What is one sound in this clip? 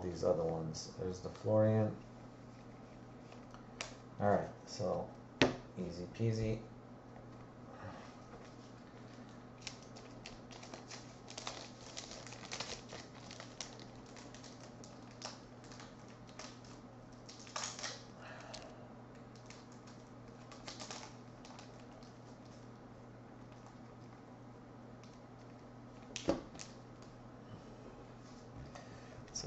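Trading cards rustle and slide between hands.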